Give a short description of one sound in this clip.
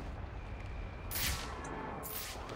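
A loud rush of air sweeps past.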